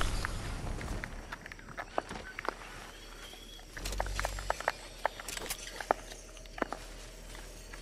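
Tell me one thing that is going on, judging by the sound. Footsteps patter on soft ground.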